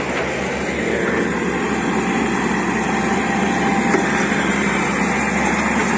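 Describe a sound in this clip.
A forklift engine runs.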